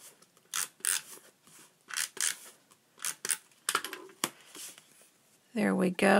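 Paper slides and rustles on a table.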